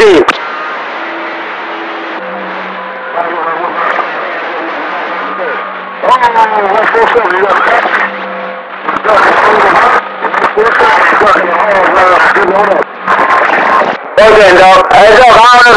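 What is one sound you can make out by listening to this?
A shortwave radio receiver hisses and crackles with warbling, whistling signals through its loudspeaker.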